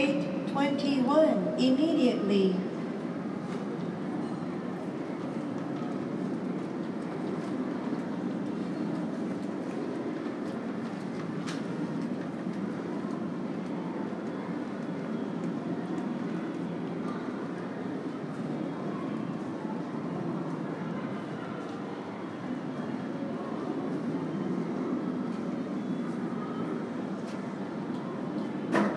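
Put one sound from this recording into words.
A large echoing hall fills with a steady, low background hum.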